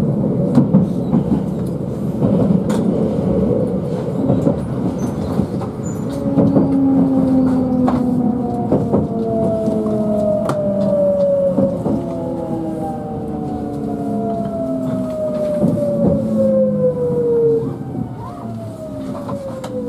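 Train wheels click and knock over rail joints.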